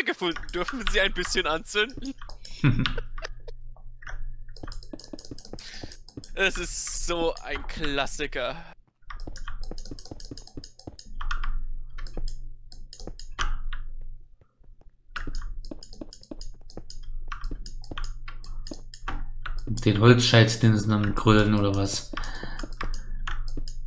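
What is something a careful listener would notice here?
Stone blocks are set down one after another with short, dull knocks.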